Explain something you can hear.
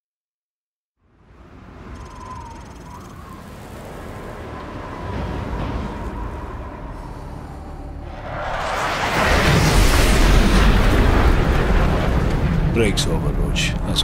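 Strong wind howls across an open mountainside, rising to loud gusts.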